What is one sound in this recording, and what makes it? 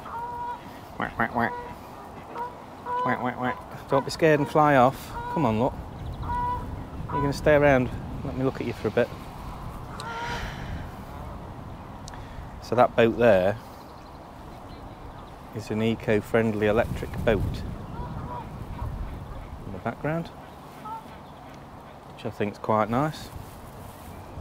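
Ducks quack loudly nearby.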